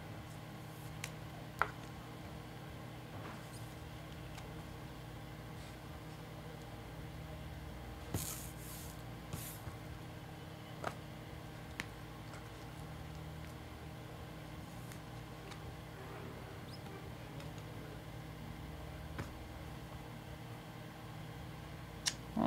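A plastic card sleeve crinkles and clicks as it is handled.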